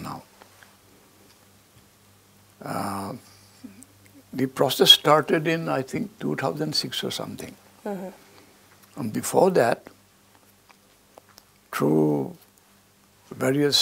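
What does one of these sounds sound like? An elderly man speaks calmly and slowly, close to a microphone, with pauses.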